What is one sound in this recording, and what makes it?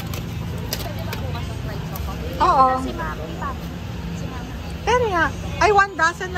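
Plastic packaging rustles as it is handled.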